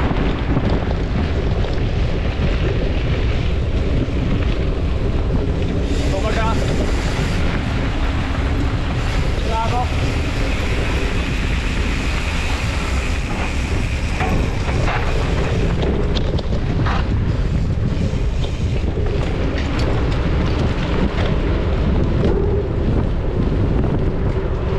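Wind buffets loudly against a close microphone.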